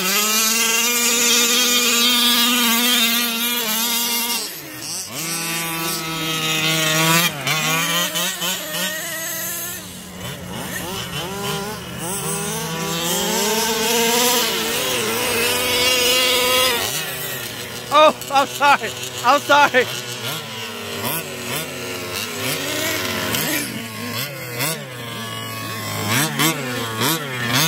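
An electric motor of a toy car whines loudly, rising and falling in pitch as it speeds up and slows down.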